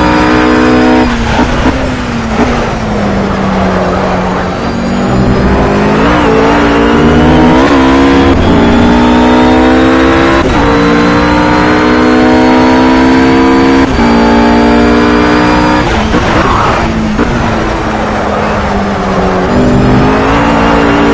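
A racing car engine drops in pitch as the driver brakes and shifts down for corners.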